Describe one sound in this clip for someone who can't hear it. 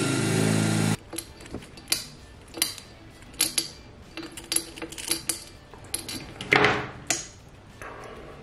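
Metal pliers click and tap against a small metal ring.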